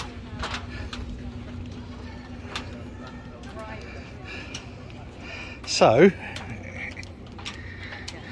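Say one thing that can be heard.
Footsteps tap on a hard walkway nearby.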